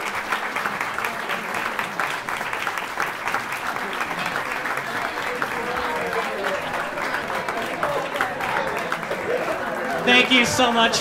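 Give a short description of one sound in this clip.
A crowd applauds and cheers in a large room.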